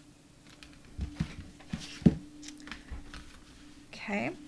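Card stock taps and rustles against a table.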